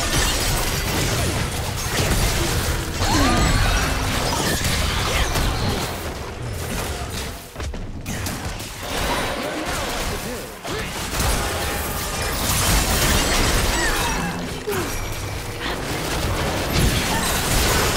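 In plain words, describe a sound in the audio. Game spell effects whoosh and clash during a fight.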